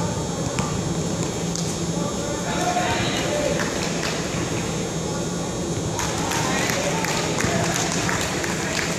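A crowd of young players and spectators chatter and call out.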